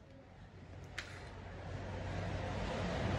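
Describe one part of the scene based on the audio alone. An angle grinder motor hums and whirs, growing louder.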